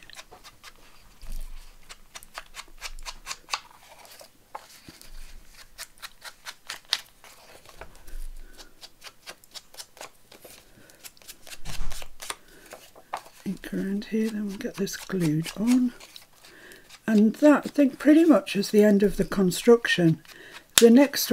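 A foam ink blending tool dabs and taps repeatedly on paper, close up.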